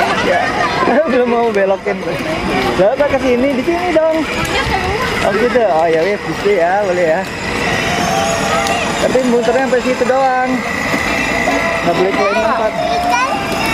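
A woman talks to a small child nearby.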